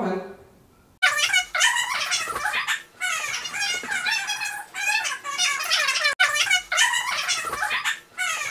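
A man talks with animation nearby.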